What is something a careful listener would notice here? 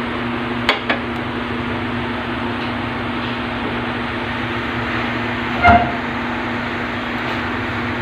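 Meat sizzles steadily in hot oil in a pan.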